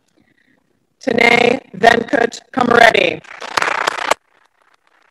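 A man reads out loudly through a microphone.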